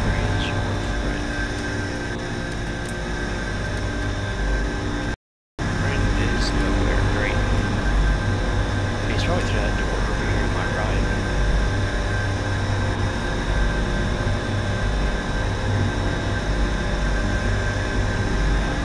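A low mechanical hum drones steadily through an enclosed metal space.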